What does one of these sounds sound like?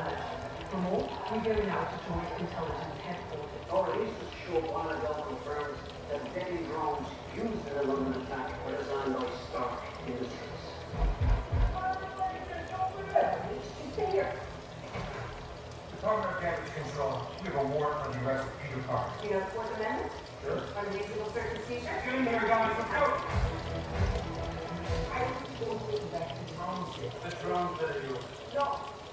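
A man talks steadily and calmly close by.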